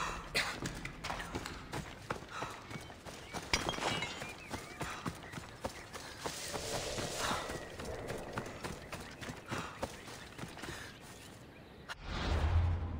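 Footsteps run through grass and dry brush.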